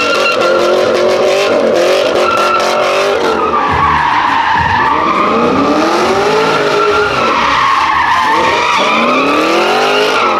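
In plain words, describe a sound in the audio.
Tyres screech loudly on the asphalt as a car spins.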